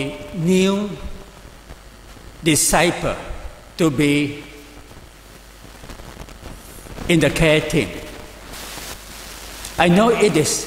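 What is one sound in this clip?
An elderly man speaks calmly in pauses through a microphone in a room with a slight echo.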